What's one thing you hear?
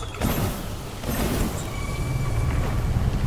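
Flames burst and crackle with a heavy strike.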